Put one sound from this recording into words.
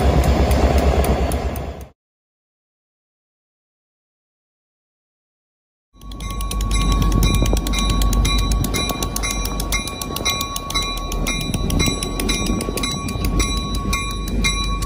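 A diesel locomotive engine rumbles deeply close by.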